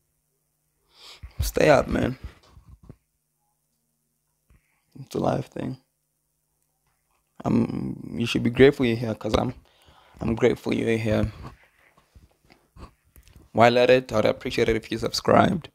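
A young man speaks casually into a close microphone, in short bursts with pauses.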